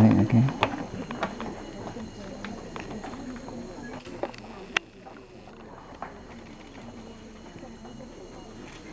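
Leaves and branches rustle and creak.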